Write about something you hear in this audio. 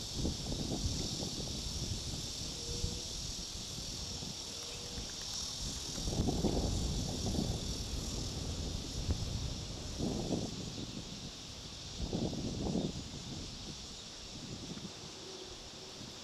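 Wind gusts outdoors, rumbling in uneven bursts.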